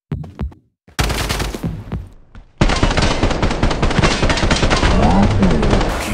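A rifle fires rapid bursts at close range.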